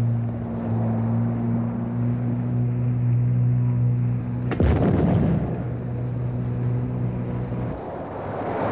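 Motorboat engines drone steadily.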